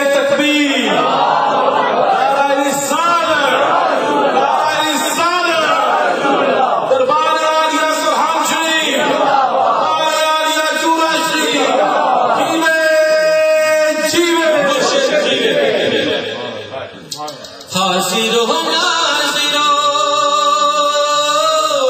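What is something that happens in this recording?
An elderly man chants in a long, melodic voice through a microphone.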